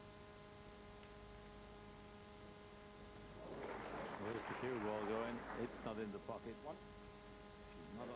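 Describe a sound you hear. Snooker balls knock together and roll across the table.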